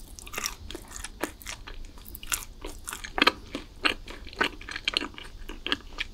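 A young woman chews soft pastry with her mouth closed, close to the microphone.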